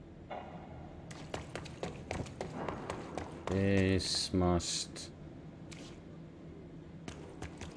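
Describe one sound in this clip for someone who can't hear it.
Quick footsteps run across a hard floor.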